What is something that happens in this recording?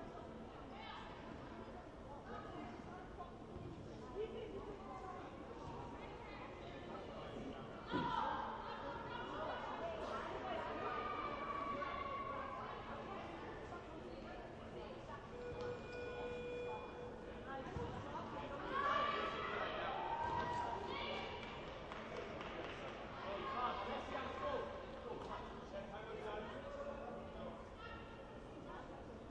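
A small crowd chatters and calls out in a large echoing hall.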